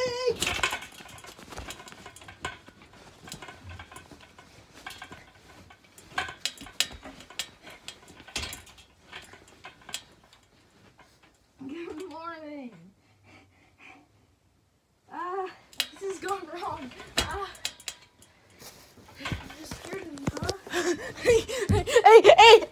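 A young boy laughs and shouts excitedly close by.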